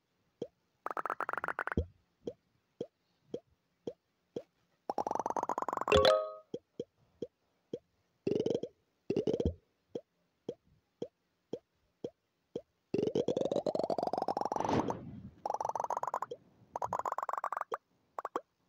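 Rapid crunching blips rise in pitch as a ball smashes through layers.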